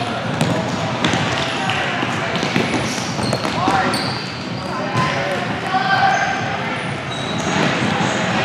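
A ball thuds on a hard floor as players kick it.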